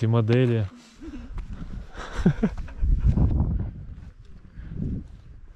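Footsteps crunch on a gravel road.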